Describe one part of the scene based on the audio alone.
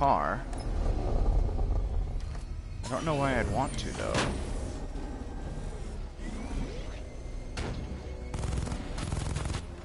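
A small remote-controlled vehicle's motor hums and rumbles as it drives.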